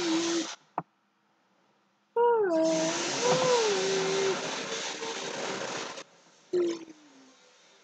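A young man makes humming, muffled vocal sounds close by.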